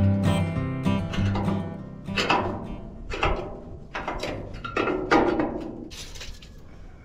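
A wrench clanks against metal.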